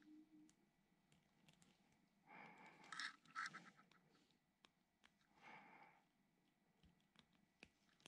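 Pliers crimp a small metal connector onto a wire with a click.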